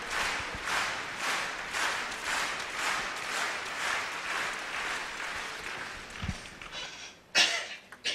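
A large crowd claps in steady rhythm in a big echoing hall.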